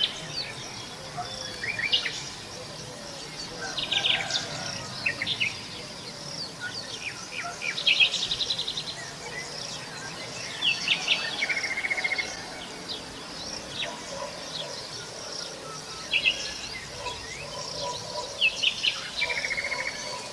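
Birds chirp and trill in bursts close by, outdoors.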